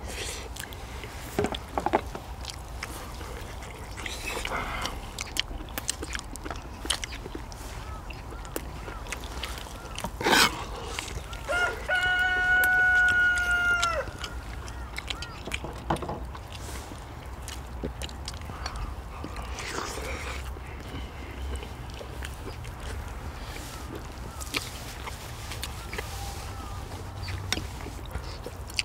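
People chew and smack their lips loudly close by.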